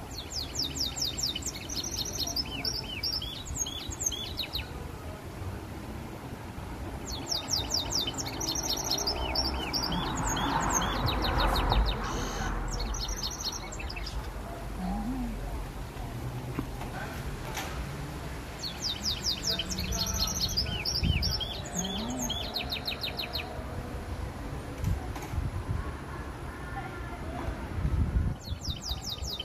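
A canary sings in rapid, bright trills in bursts.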